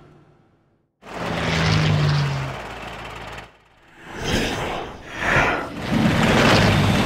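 Racing pods roar past with a loud engine rush.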